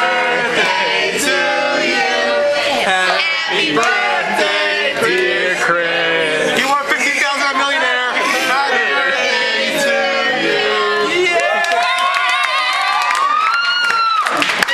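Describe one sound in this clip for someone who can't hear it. A group of men and women sing together close by.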